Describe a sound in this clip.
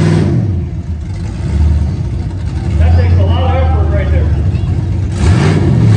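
A lifted pickup truck's engine rumbles outdoors.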